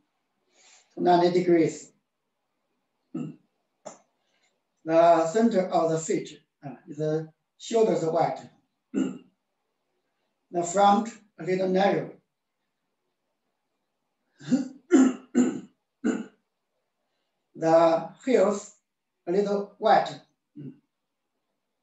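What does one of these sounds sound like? A middle-aged man speaks calmly in short phrases.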